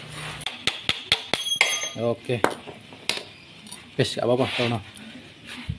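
A screwdriver clicks and scrapes against metal.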